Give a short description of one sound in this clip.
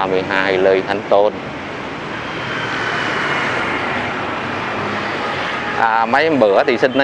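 Traffic hums steadily in the distance along a street outdoors.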